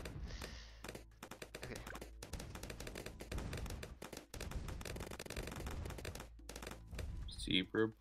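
Cartoon balloons pop in rapid bursts of game sound effects.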